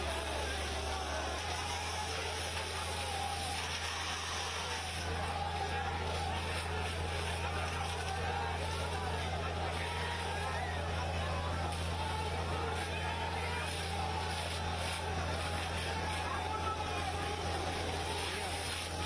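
A water cannon blasts a powerful jet of water with a steady rushing hiss.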